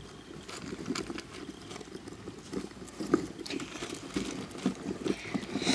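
A plastic hamster wheel rattles and clicks as hamsters scramble in it.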